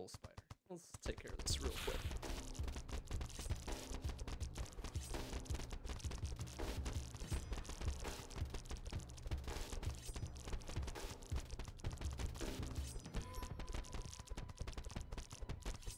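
Video game combat sounds clash and thud.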